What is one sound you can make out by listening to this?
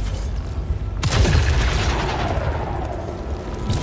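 A sudden loud whoosh sweeps past and fades.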